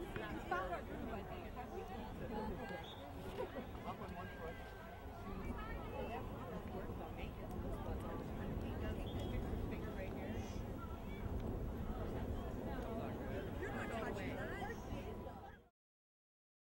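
A crowd of girls and adults chatter and call out nearby, outdoors.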